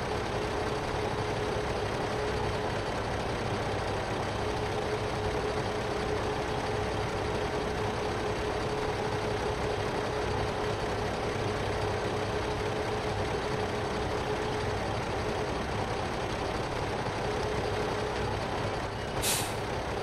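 A hydraulic crane whines as it swings and lifts.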